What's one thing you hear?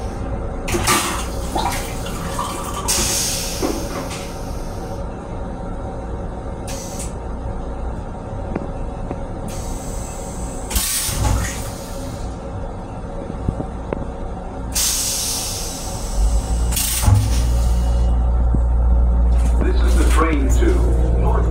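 A train rumbles and clatters steadily, growing louder toward the end.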